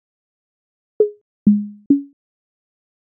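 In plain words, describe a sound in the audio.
Short electronic sound samples play briefly, one after another.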